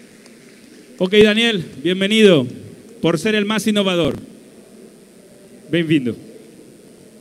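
A man announces with animation through a microphone and loudspeakers.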